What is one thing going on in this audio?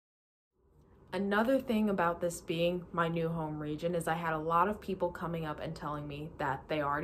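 A young woman speaks warmly and with animation through an online call.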